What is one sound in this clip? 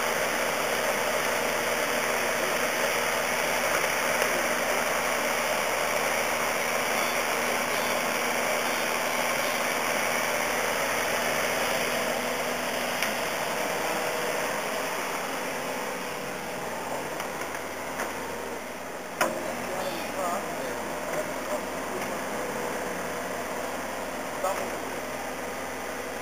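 A small digger's engine rumbles steadily nearby.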